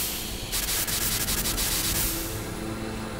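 A fire extinguisher sprays with a loud hiss.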